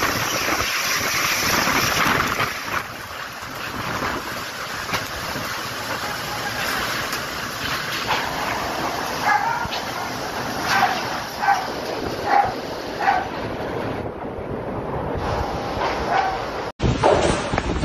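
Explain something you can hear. Strong wind roars outdoors through heavy rain.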